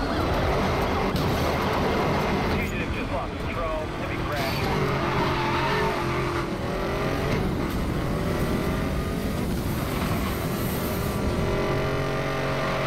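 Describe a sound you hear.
A sports car engine roars and revs up as it accelerates.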